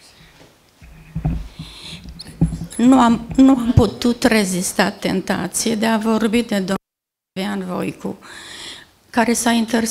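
An elderly woman speaks into a microphone.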